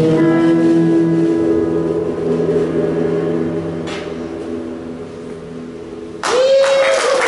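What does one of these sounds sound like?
A band's held chord rings out live and slowly fades.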